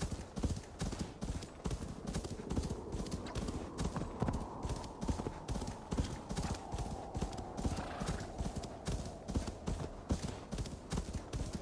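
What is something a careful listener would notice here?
Hooves pound rapidly through snow at a gallop.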